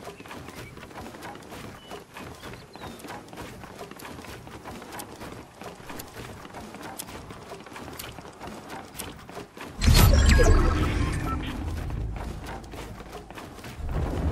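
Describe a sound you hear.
Footsteps of a game character run quickly across wooden floors.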